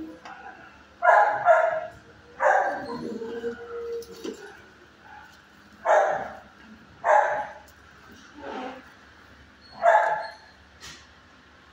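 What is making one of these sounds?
A dog barks loudly in short bursts.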